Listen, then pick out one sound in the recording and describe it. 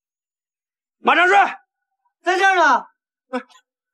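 A man calls out loudly with rising and falling cries.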